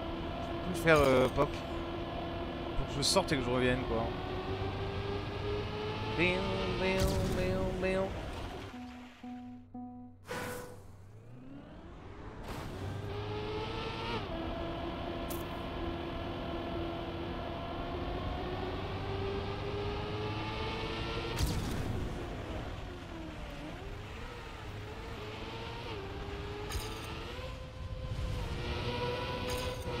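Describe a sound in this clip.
A racing car engine whines steadily, rising and falling in pitch as it speeds up.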